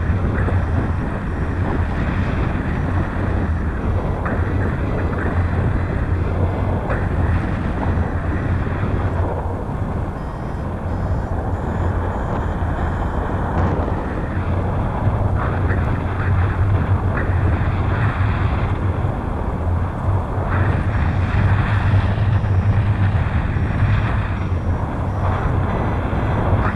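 Strong wind roars and buffets loudly against a microphone.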